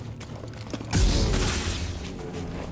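A lightsaber ignites with a loud crackling whoosh.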